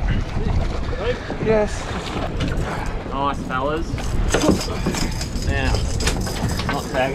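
A man speaks with excitement close by.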